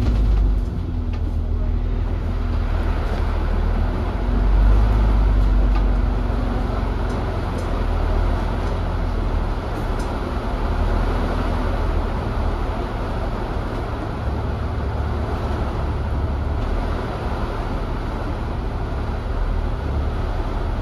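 Rain patters on a bus window.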